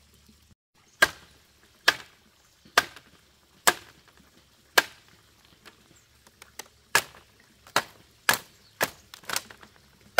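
A wooden mallet pounds sharply on bamboo strips.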